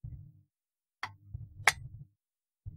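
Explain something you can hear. A circuit board clicks and taps as it is handled.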